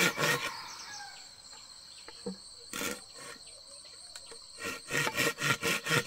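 A man taps and scrapes at the ground with a hand tool.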